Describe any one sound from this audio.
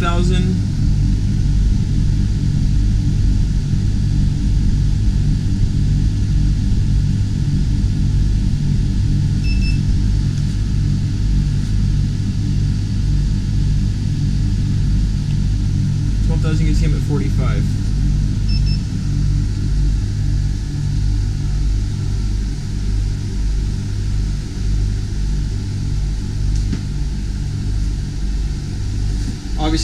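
A ventilation unit hums low and steadily.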